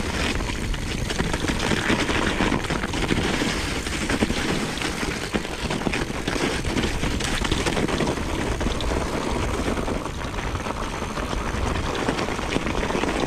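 Bicycle tyres crunch over snow and gravel.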